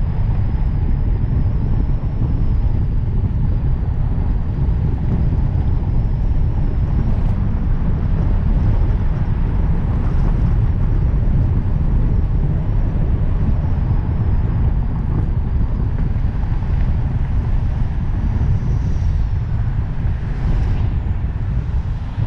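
A car drives along a street, its tyres rumbling on the road.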